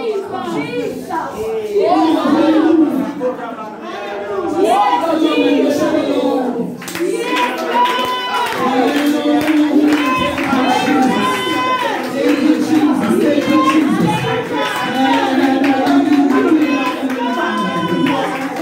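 A woman speaks loudly and fervently into a microphone, heard through a loudspeaker in an echoing room.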